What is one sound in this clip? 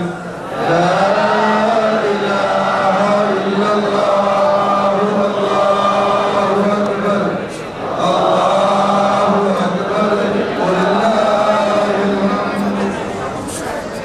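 A man chants in a long melodic recitation.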